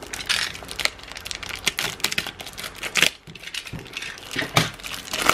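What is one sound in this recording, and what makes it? Plastic wrap crinkles and rustles as hands peel it away.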